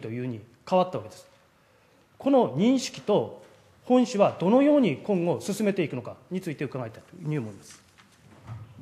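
A middle-aged man speaks into a microphone in a large room with some echo.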